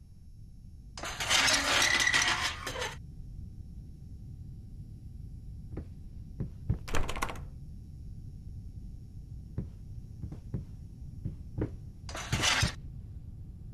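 A metal lift gate rattles and clanks.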